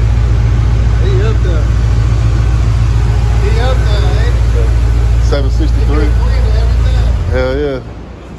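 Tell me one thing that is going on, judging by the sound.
An engine roars steadily, loud and close.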